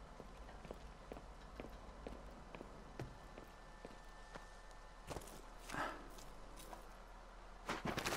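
Footsteps crunch softly over dry leaves and debris.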